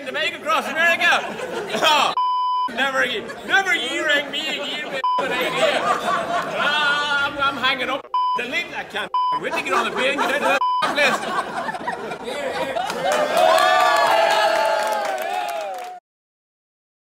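A group of people laugh and cheer together.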